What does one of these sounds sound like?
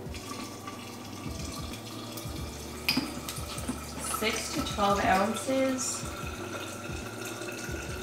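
A refrigerator dispenser pours water into a cup.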